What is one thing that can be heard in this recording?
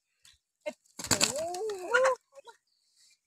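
A chicken squawks loudly close by.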